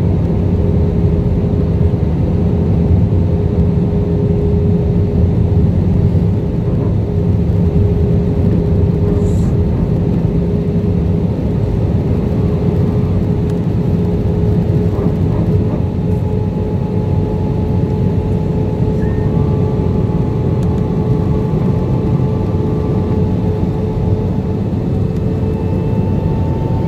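A jet engine roars steadily with a low rumble and a humming whine, heard from inside an aircraft cabin.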